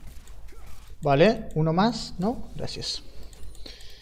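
A young man speaks excitedly, close to a microphone.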